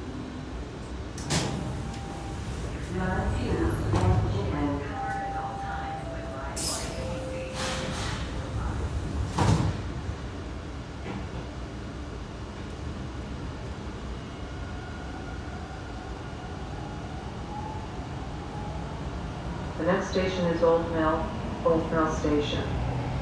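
A subway train hums with a low, steady rumble.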